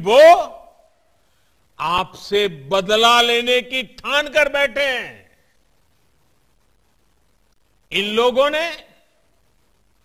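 An elderly man speaks emphatically into a microphone, in short bursts with pauses.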